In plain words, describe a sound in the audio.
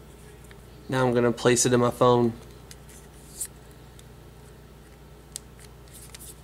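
A plastic phone cover snaps and clicks into place.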